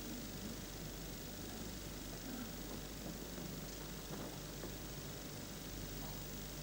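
Snooker balls click softly against each other.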